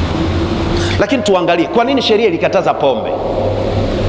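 A man chants in a melodic voice through a microphone, echoing in a large room.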